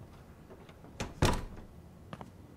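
A door opens with a thud.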